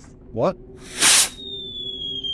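A flare launches with a sharp bang.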